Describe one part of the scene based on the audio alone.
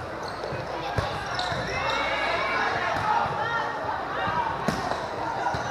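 A volleyball is hit with a sharp thump.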